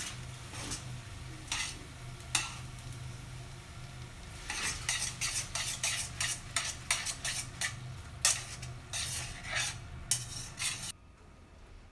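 Tongs clatter against a metal pan.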